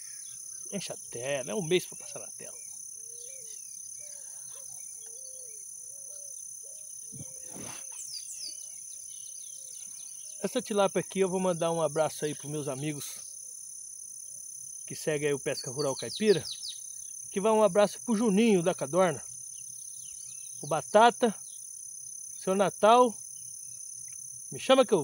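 A man talks with animation close to the microphone, outdoors.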